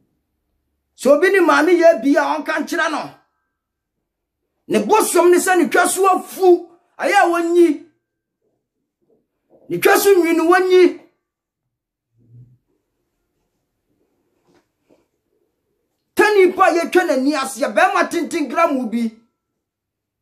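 A man speaks forcefully and with animation close to a microphone, in bursts with pauses.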